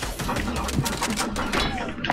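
Footsteps thud quickly on wooden boards.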